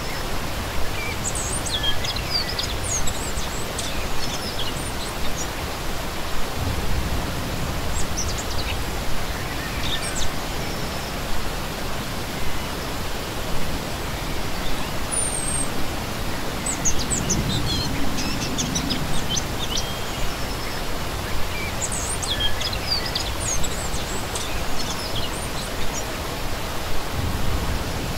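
A shallow stream rushes and splashes steadily over rocks, heard close by.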